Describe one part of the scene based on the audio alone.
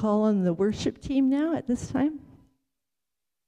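A woman speaks calmly into a microphone in an echoing room.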